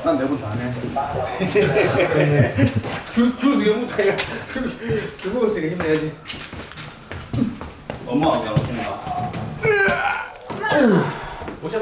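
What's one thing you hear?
A window sash knocks and rattles as men lift it out of its frame.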